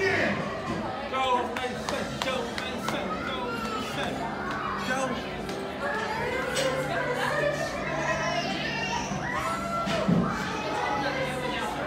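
People chatter all around in a busy, echoing room.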